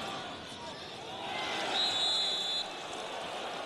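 A stadium crowd roars louder as an attack nears the goal.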